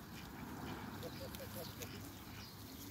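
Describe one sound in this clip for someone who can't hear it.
Ducks chirp softly nearby.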